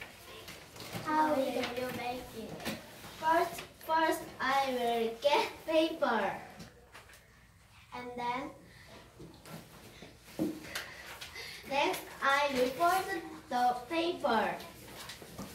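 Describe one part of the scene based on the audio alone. A young girl speaks clearly to another girl close by.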